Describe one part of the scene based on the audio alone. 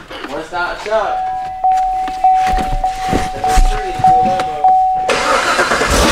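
A car's warning chime beeps repeatedly.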